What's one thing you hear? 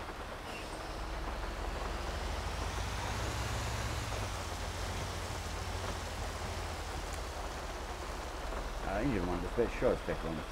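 A fire truck's engine revs and rumbles as it drives off.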